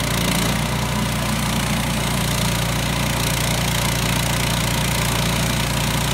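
A sawmill engine runs with a steady loud drone.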